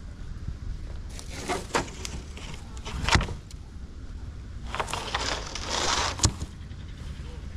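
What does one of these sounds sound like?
A metal sheet scrapes and clatters over gravel.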